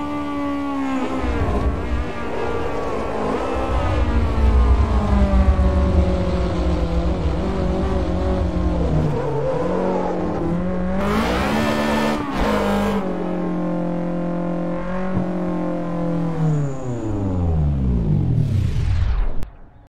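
A car engine revs hard, rising and falling in pitch as the gears shift.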